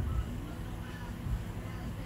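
Footsteps thud on a hard floor nearby.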